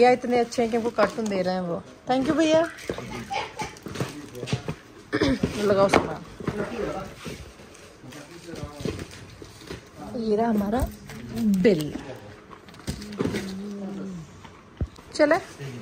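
A cardboard box rustles and thumps as items are moved.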